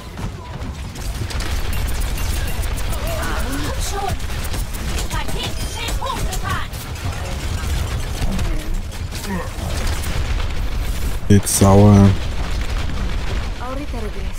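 Energy weapons fire in rapid, buzzing bursts.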